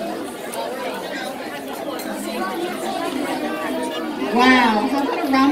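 A crowd of children and adults chatter.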